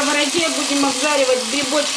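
Chopped onions drop into a frying pan.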